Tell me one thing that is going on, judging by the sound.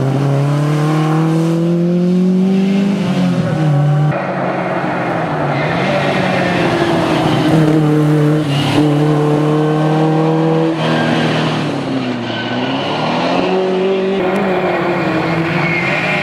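A rally car engine roars loudly, revving up and down as the car speeds past.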